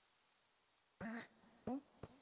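A heavy thud sounds as a figure lands on the ground.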